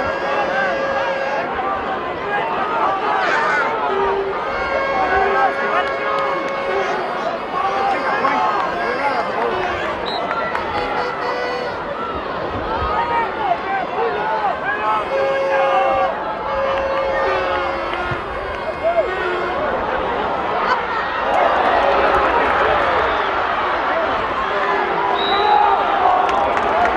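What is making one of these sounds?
A crowd of spectators shouts and cheers in an outdoor stadium.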